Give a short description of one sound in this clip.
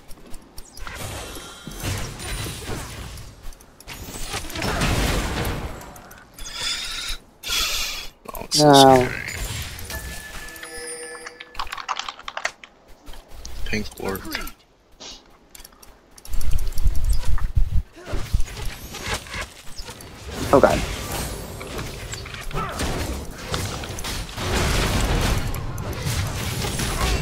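Game weapons clash and hit repeatedly.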